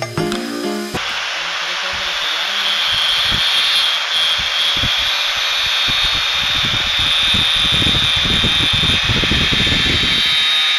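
An angle grinder disc grinds harshly against metal.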